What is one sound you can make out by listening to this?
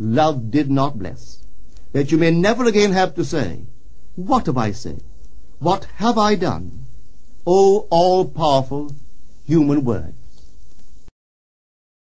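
A man speaks calmly and steadily.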